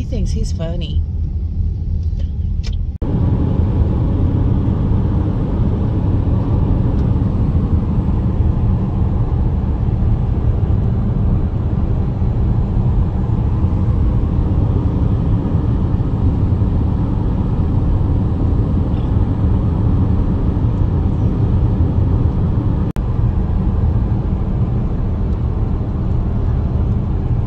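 A car engine and tyres rumble steadily on the road.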